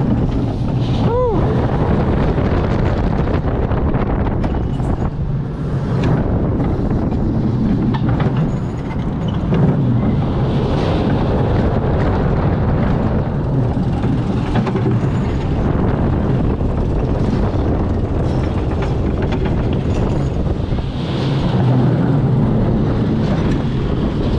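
A roller coaster car rumbles and rattles along its track.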